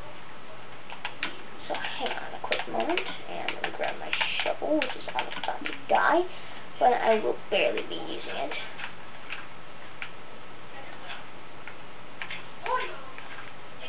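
A video game plays digging and crunching sounds through a television speaker.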